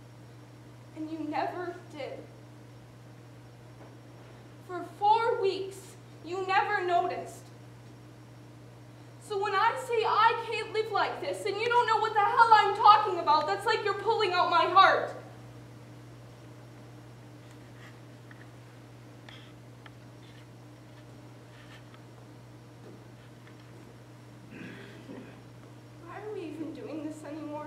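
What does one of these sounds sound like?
A young woman speaks with animation on a stage.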